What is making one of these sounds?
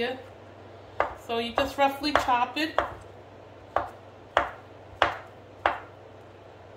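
A knife chops on a wooden cutting board in sharp, steady knocks.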